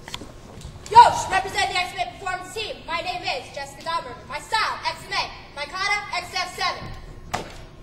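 A young woman shouts loudly in a large echoing hall.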